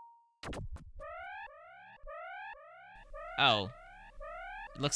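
Electronic game sound effects chirp in quick rising bursts.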